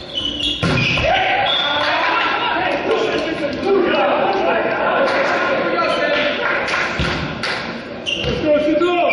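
Young men cheer loudly together.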